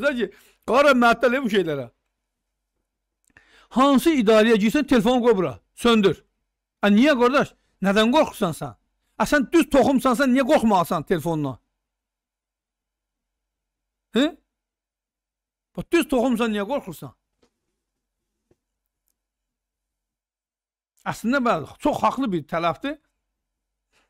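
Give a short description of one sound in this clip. A middle-aged man speaks with animation into a close microphone, in bursts broken by pauses.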